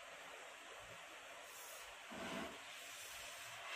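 A flame flares up with a soft whoosh.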